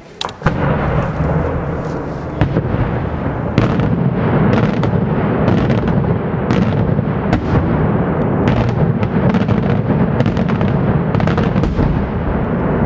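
Fireworks burst overhead with sharp, repeated bangs.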